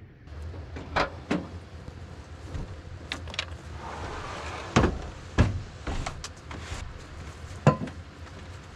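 A wooden drawer slides open with knocks and thuds.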